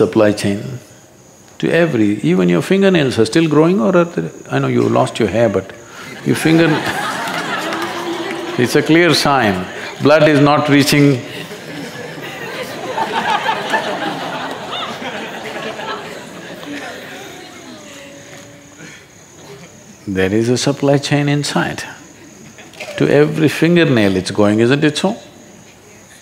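An elderly man speaks calmly and expressively into a close microphone.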